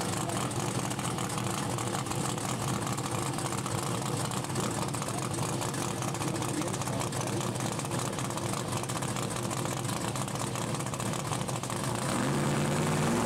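A car engine idles with a loud, rough rumble.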